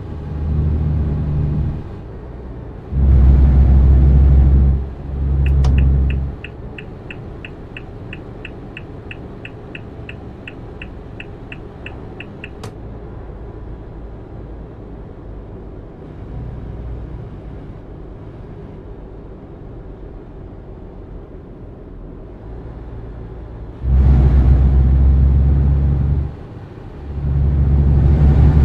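A truck engine rumbles steadily, roaring louder as it accelerates now and then.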